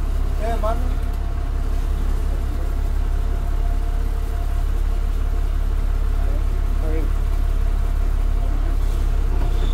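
The bus rattles and creaks as it rolls along a bumpy road.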